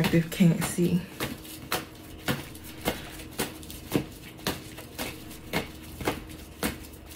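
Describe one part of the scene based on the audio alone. Playing cards are shuffled by hand with soft, regular taps.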